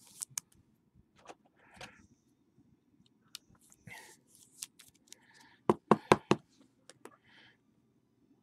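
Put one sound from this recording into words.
Cardboard and plastic rustle and click as hands handle a pack of cards.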